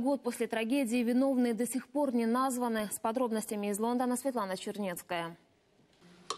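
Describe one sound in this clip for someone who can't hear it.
A young woman speaks calmly and clearly into a microphone, reading out.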